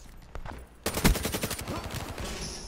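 An automatic rifle fires a burst in a video game.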